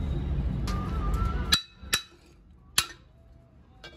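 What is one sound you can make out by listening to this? A metal rod strikes a metal jack with sharp ringing clanks.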